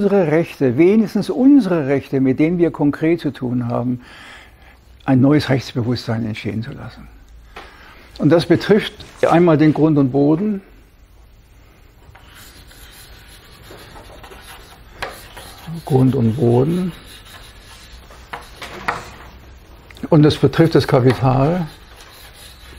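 An elderly man lectures with animation, pausing between phrases.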